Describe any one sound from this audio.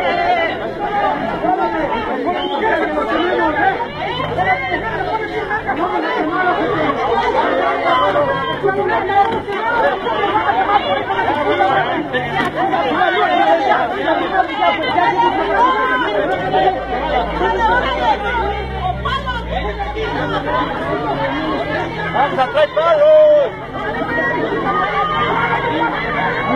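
A crowd of men and women shout and argue loudly nearby, outdoors.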